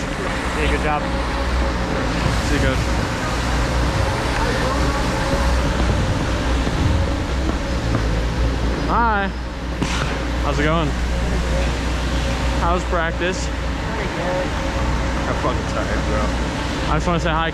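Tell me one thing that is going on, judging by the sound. Skates scrape and glide over ice.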